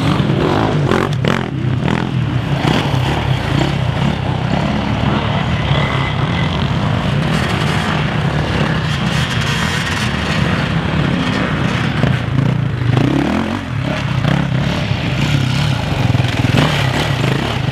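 A motorcycle engine roars past up close.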